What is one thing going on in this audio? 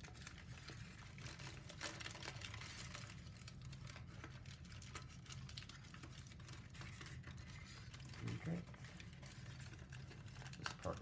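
Stiff paper crinkles and rustles as hands fold and press it.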